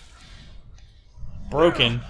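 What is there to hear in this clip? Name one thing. A sword swings and clashes with a staff.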